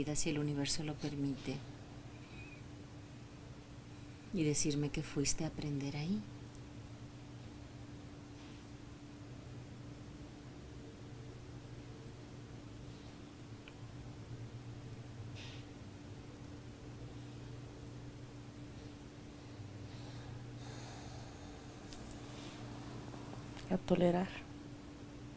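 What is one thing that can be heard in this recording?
A middle-aged woman snores loudly close by, in a few short bursts.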